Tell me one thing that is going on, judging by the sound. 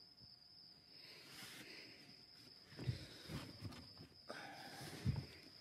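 A young man breathes heavily and groans.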